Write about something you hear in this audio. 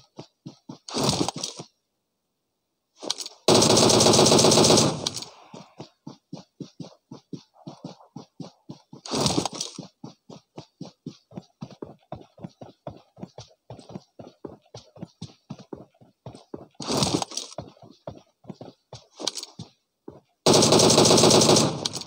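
Rifle shots crack in loud bursts.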